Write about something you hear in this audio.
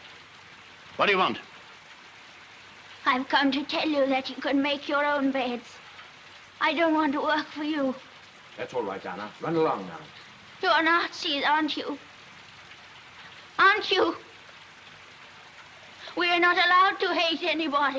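A young woman speaks calmly and earnestly nearby.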